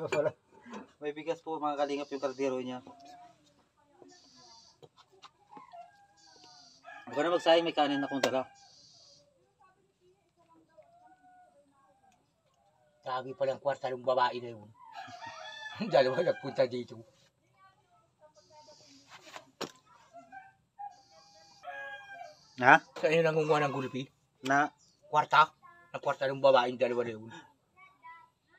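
A middle-aged man talks calmly and close by, with pauses.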